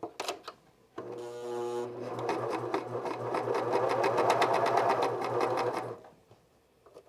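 A sewing machine whirs steadily as it stitches.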